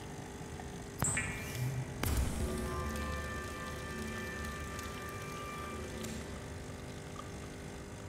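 A machine hums and crackles with electric sparks.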